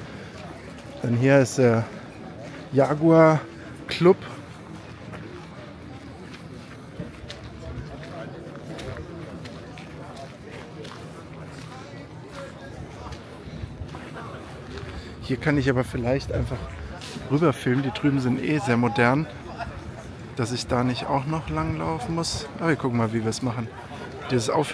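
A man speaks close by in a calm, chatty way.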